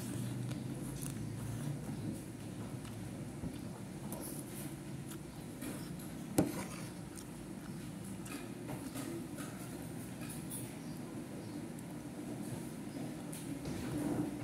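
A person chews food close by.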